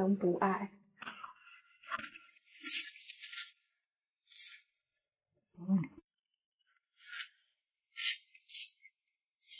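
A young woman chews food with wet, crunchy sounds.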